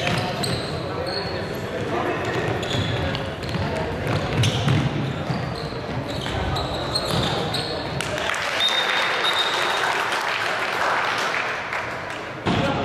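Players shout to each other, echoing in a large hall.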